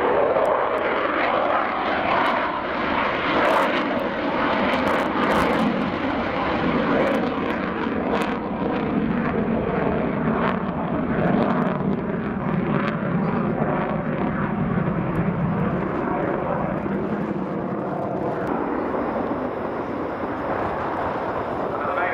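A jet engine roars loudly overhead with a deep, rushing rumble.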